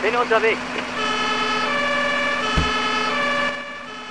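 A fire engine's two-tone siren wails.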